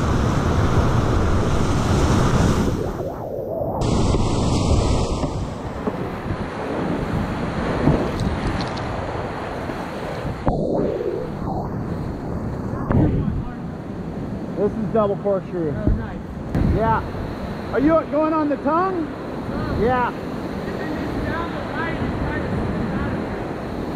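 Whitewater rushes and roars loudly close by.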